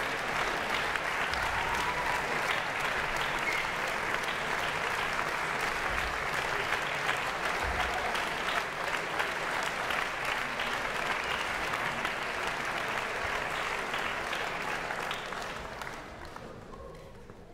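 An audience applauds in a large concert hall.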